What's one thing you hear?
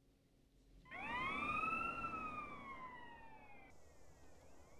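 A police siren wails and fades.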